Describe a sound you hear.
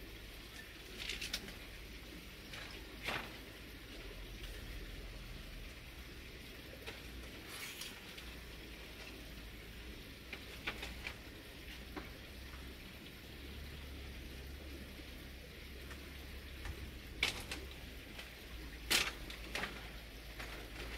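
Bamboo poles knock and clatter against a woven bamboo wall.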